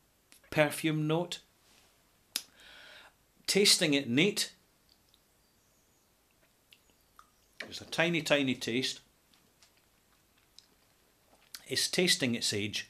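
A middle-aged man speaks calmly close to a microphone, in short bursts.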